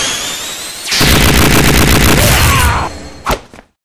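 A harsh electronic crash of noise bursts loudly.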